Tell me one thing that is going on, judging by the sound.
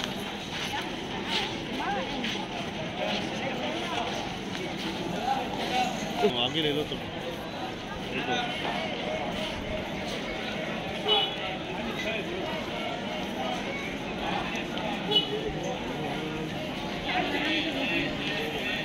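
Footsteps shuffle on a stone pavement.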